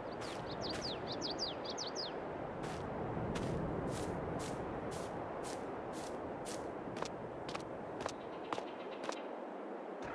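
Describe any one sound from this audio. Footsteps crunch steadily over soft soil and grass.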